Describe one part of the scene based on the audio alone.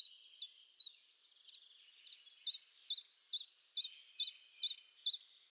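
A bird calls overhead with quick, sharp, high chirps, repeated again and again.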